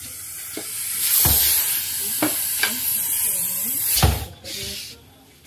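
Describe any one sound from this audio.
A large snake hisses loudly.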